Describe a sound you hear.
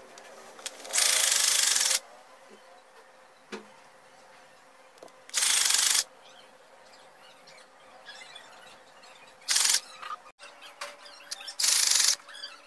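A sewing machine whirs in short, loud bursts.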